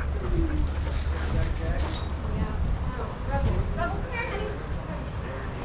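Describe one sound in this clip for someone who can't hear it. Dogs yelp and whine excitedly while playing close by.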